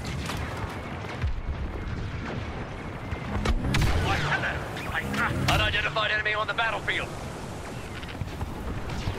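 Laser guns fire in scattered bursts.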